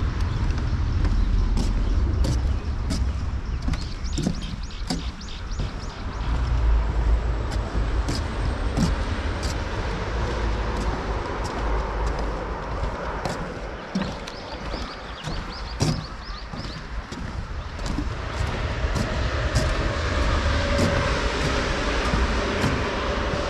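Footsteps thud on a wooden boardwalk.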